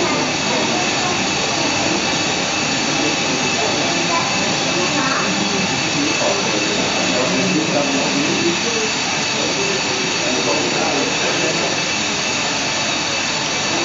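Jet engines hum steadily as an airliner taxis.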